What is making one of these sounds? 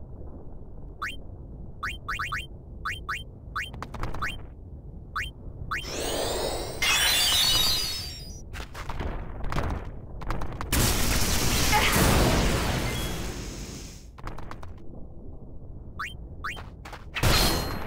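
Menu cursor blips tick several times.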